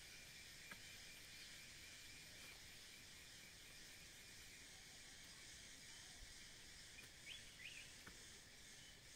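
Leafy plants rustle and snap as they are picked by hand.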